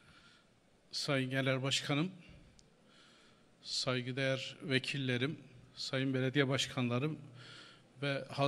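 A man speaks loudly and with emphasis into a microphone, echoing through a large hall.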